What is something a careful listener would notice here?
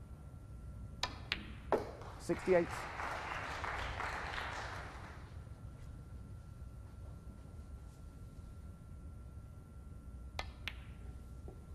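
Snooker balls click sharply against each other on the table.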